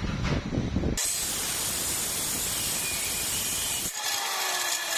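A cut-off saw grinds loudly through metal with a harsh screech.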